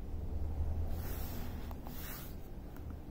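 A finger taps on a touchscreen.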